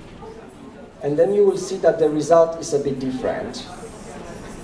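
A young man speaks briefly through a microphone in an echoing room.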